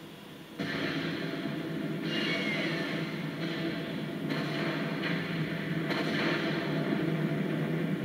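Explosions rumble from a television speaker.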